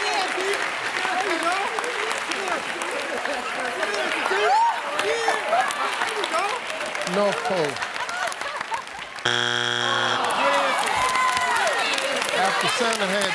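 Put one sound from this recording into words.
A studio audience cheers and shouts loudly.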